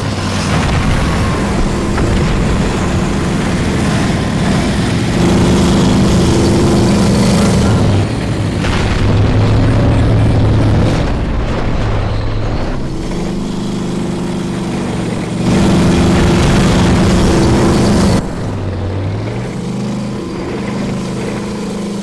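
A heavy tank engine rumbles and roars, its pitch rising and falling as it speeds up and slows down.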